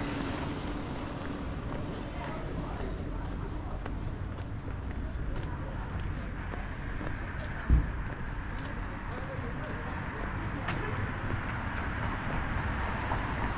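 Light traffic hums along a nearby street.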